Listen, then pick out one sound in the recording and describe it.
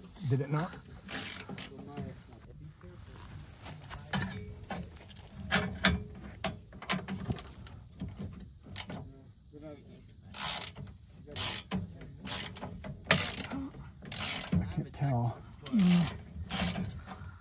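A wrench clinks and scrapes against a metal bumper bolt.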